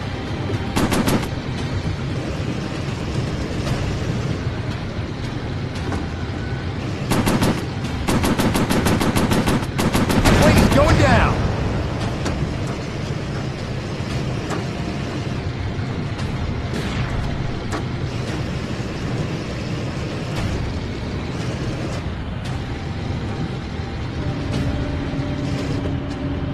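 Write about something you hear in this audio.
A propeller plane's engine drones steadily throughout.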